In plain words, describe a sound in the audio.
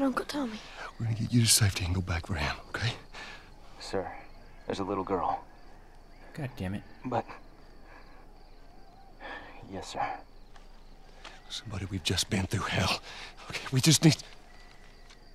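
A man speaks urgently and anxiously.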